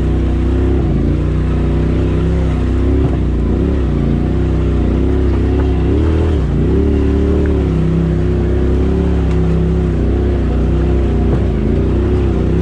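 An off-road vehicle's engine rumbles and revs unevenly as it crawls up a rocky trail.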